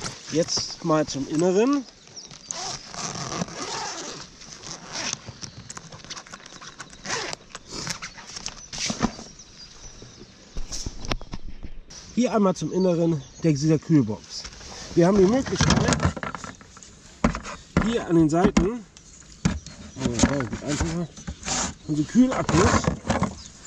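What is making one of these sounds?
A fabric bag rustles as hands handle it.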